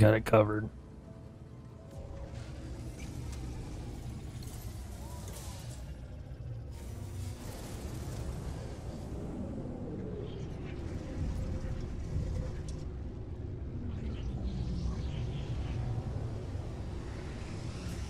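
A spacecraft engine hums with a low steady rumble.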